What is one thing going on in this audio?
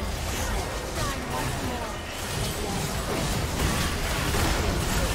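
Game spell effects crackle and blast in a busy fight.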